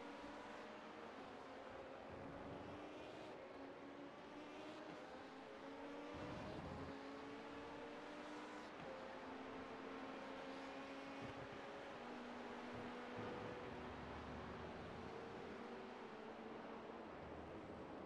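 A racing car engine roars and rises and falls in pitch as it shifts gears.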